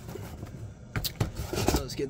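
Cardboard flaps rustle and scrape.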